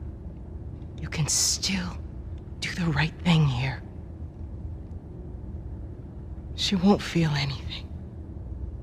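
A young woman speaks tensely and pleadingly, close by.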